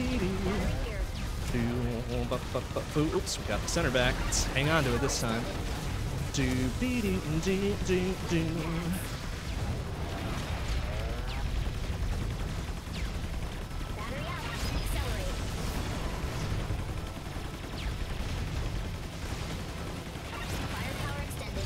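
Game gunfire and explosions crackle rapidly.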